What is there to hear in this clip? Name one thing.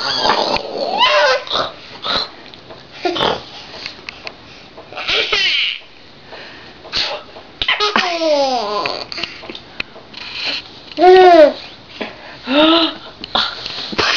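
A baby squeals and babbles loudly.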